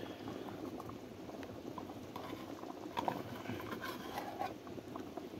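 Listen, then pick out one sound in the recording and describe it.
Water bubbles and boils steadily in a pot.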